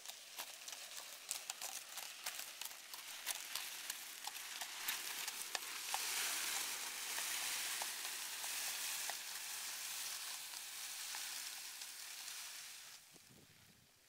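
A plastic sack scrapes and rustles as it is dragged along the ground.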